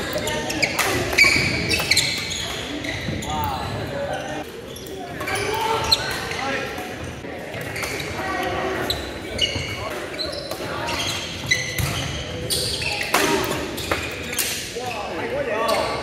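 Many players shout and talk across a large echoing hall.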